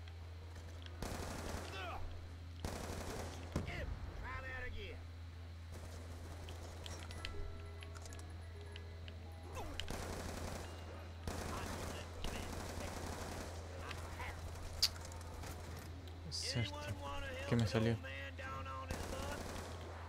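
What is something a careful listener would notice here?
Gunfire bursts out in quick rattling volleys.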